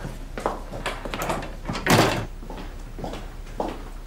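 A door clicks shut.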